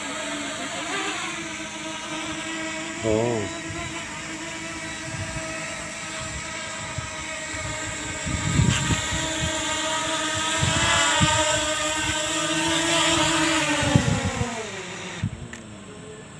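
A small drone's propellers buzz with a high, steady whine.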